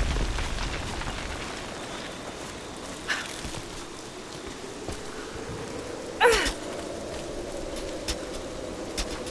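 Rain falls steadily outdoors in wind.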